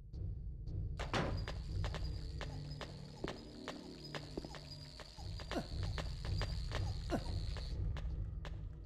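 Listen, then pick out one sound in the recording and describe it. Footsteps thud slowly and evenly on a hard floor.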